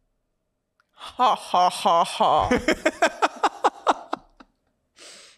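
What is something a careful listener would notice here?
A young woman laughs close to a microphone.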